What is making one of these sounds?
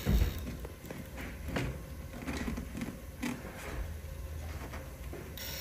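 A small toy robot's electric motor whirs as it crawls over rocks.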